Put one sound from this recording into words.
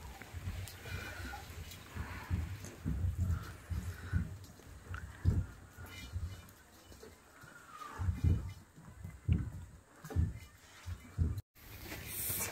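Leaves rustle and toss in a hot wok, stirred by hand.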